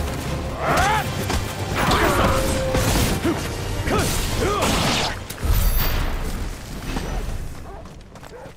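Fire crackles and bursts during a fight.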